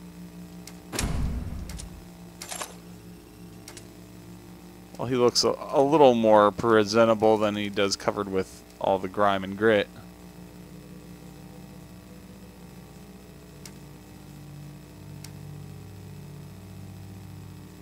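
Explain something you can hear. Short game menu clicks and chimes sound as options are selected.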